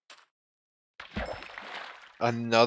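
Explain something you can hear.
A fishing float splashes in water.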